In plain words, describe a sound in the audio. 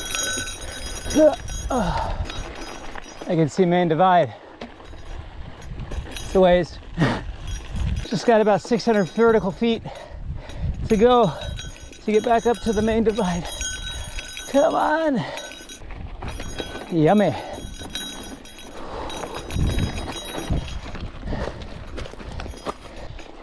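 Bicycle tyres crunch and rumble over loose gravel.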